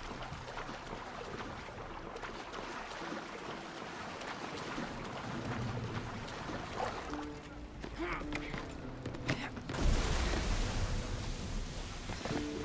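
Ocean waves wash and splash steadily.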